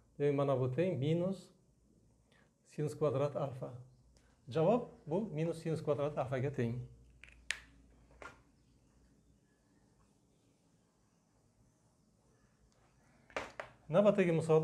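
An elderly man explains calmly, close by.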